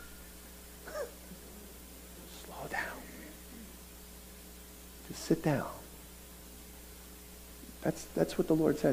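A middle-aged man speaks with animation through a microphone, in short bursts with pauses.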